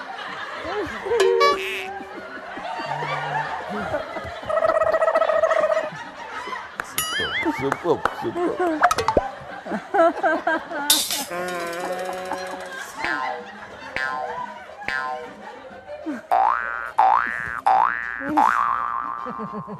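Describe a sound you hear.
A man makes lively imitated noises with his voice into a microphone.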